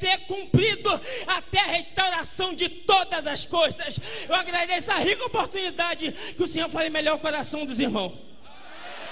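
A young man preaches with passion into a microphone in a large hall.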